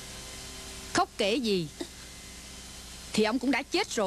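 A woman speaks tearfully close by.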